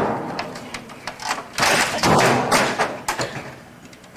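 A man bangs hard on a computer keyboard.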